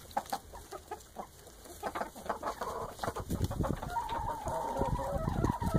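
Hens cluck and chatter close by.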